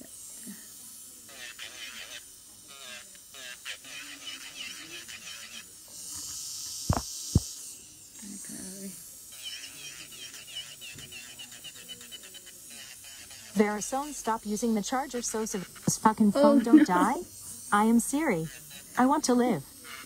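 A nail file scrapes back and forth on a fingernail in quick, rasping strokes.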